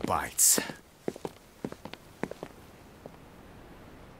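Footsteps tap on stone.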